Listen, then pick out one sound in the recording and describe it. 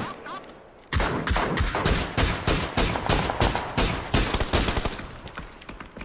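Rapid gunfire bursts loudly and repeatedly.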